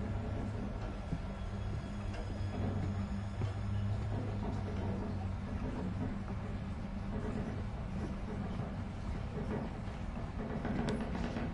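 Footsteps walk slowly across a wooden floor.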